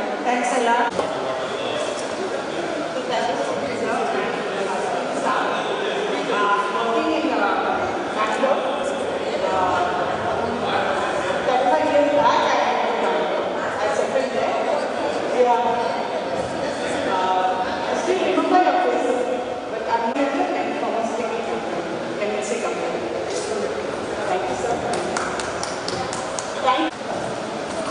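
A younger woman speaks with animation into a microphone, heard through a loudspeaker.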